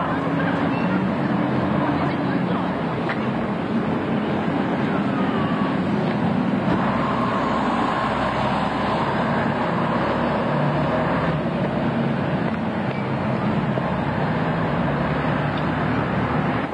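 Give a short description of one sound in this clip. A bus engine rumbles as it drives past close by.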